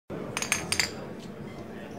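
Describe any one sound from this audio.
Glass bottles clink together in a toast.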